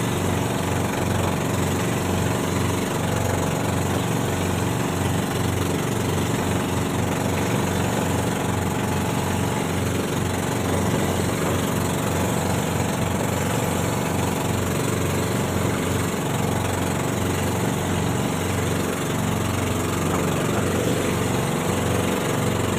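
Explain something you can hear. A boat engine drones loudly and steadily.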